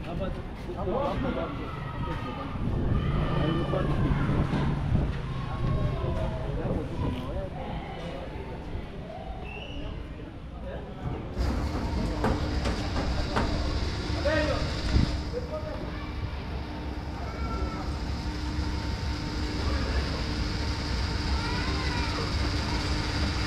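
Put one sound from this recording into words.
Metal tools clink against a motorcycle.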